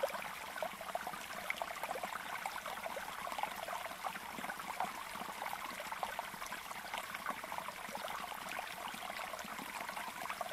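Caged songbirds chirp and twitter rapidly and continuously.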